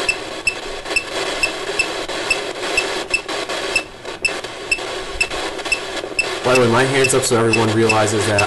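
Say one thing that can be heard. A phone beeps in a quick steady rhythm.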